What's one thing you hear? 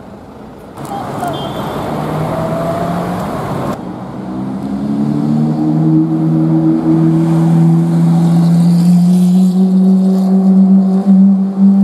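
A sports car accelerates past with a rising engine roar.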